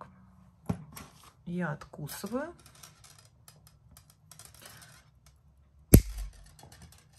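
Thin metal wire clicks and scrapes against a tool.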